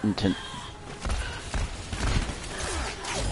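A heavy blow lands with a low thud.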